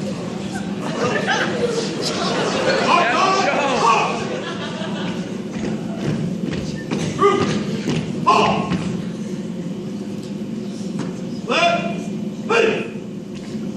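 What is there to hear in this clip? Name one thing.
Boots stomp on a wooden stage as a group marches.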